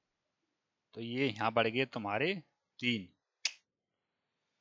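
A man speaks briefly and clearly through a headset microphone.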